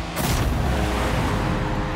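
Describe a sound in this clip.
A goal explosion booms loudly.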